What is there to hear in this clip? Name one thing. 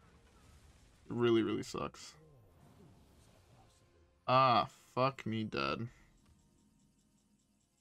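Magical sound effects of a card game chime and whoosh.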